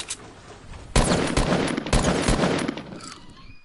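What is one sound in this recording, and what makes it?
A rifle fires a burst of loud shots.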